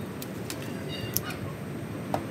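Pruning shears snip a twig.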